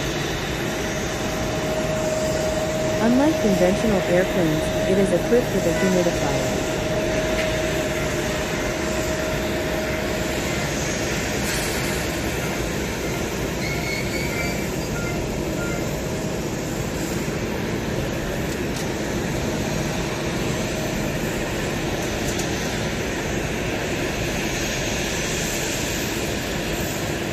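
A Boeing 787's jet engines whine at idle.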